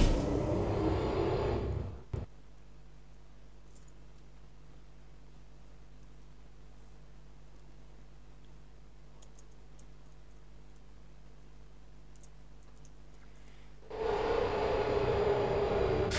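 An elevator hums as it moves.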